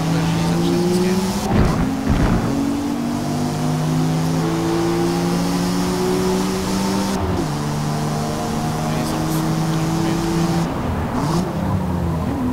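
A car engine roars steadily, shifting up through the gears as the car speeds up.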